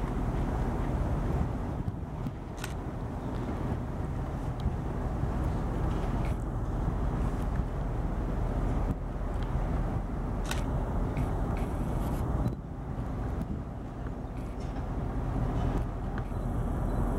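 A diesel locomotive engine rumbles steadily as it approaches slowly.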